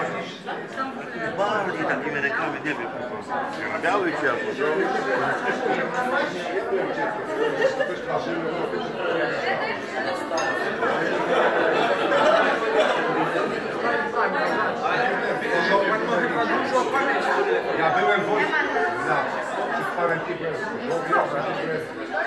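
A crowd of men and women chatter loudly all around in a busy echoing hall.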